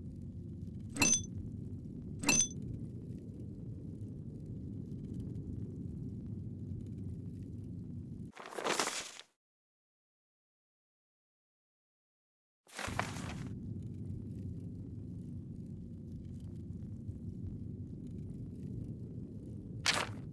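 Small objects are picked up with short clinks.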